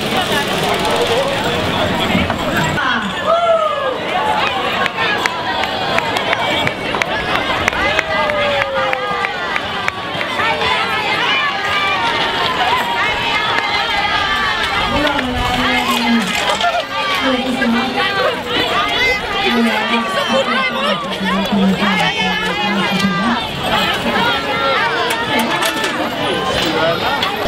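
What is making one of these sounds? A crowd of adults and children chatters and calls out outdoors.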